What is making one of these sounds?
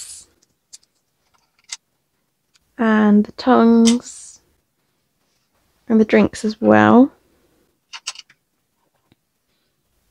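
Small plastic toy pieces click softly on a table.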